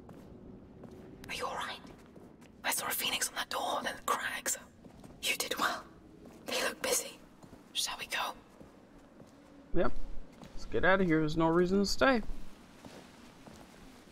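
Footsteps scuff slowly across a stone floor.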